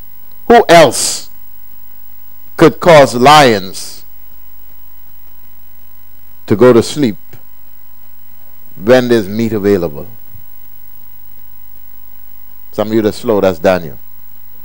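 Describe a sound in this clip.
A man speaks emphatically into a microphone, in short bursts with pauses.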